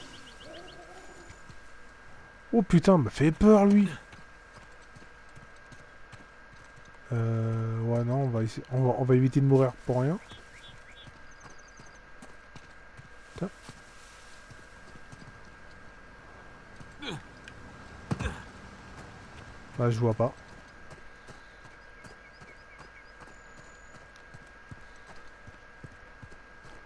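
Footsteps crunch on rock and dirt.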